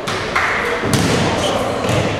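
A ball is kicked hard in a large echoing hall.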